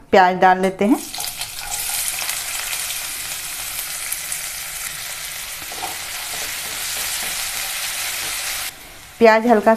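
Onions sizzle loudly in hot oil.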